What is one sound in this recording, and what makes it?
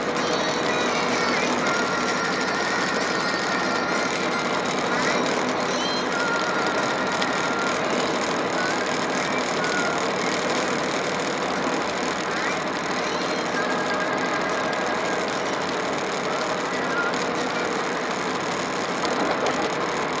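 Tyres hum steadily on a highway as a vehicle drives along.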